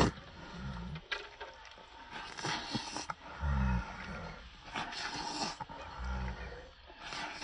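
A young person chews noisily with smacking lips.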